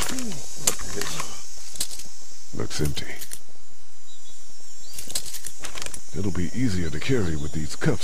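A shotgun clicks and clacks as it is handled.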